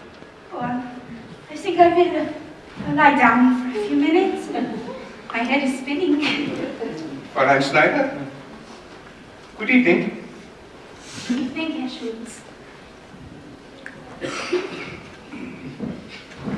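A young woman answers him, speaking in an echoing hall.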